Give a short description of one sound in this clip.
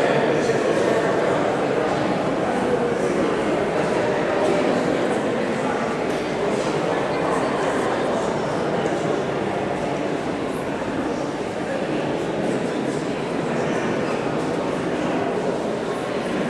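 Footsteps shuffle slowly across a stone floor in a large echoing hall.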